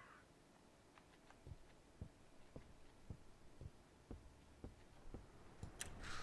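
Slow footsteps thud on a wooden floor.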